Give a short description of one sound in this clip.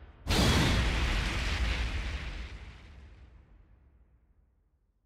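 A game's loud booming burst rings out and slowly fades away.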